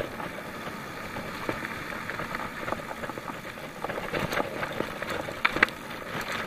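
A bicycle frame and chain rattle over bumps.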